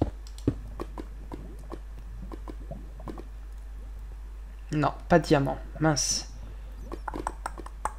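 Lava bubbles and pops.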